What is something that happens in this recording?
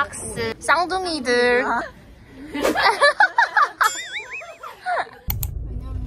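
Young women talk with animation close by.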